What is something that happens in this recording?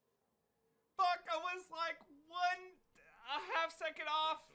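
A young man talks with animation and laughs into a close microphone.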